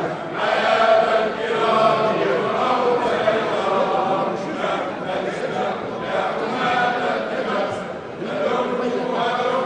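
A crowd of men and women sing together in a large echoing hall.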